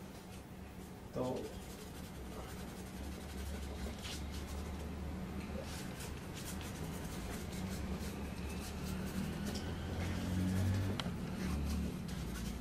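A pen scratches and rubs on paper.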